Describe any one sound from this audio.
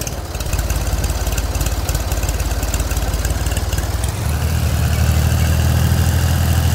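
A tractor engine chugs steadily and revs higher.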